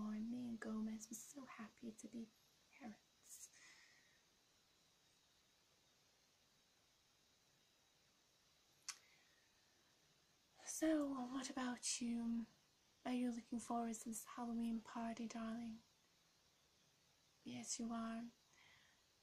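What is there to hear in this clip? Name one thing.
A young woman speaks softly and close by, in short phrases with pauses.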